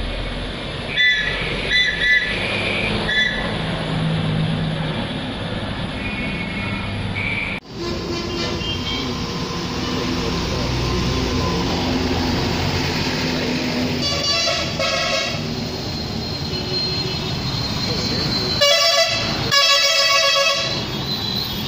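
Horns honk repeatedly in traffic.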